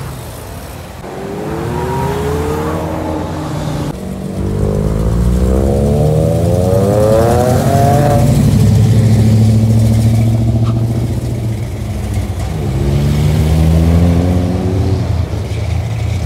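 A loud engine revs up with rising pitch as a car accelerates away.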